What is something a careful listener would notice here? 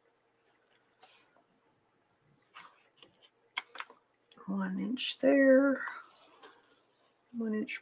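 A pencil scratches lightly along a ruler on paper.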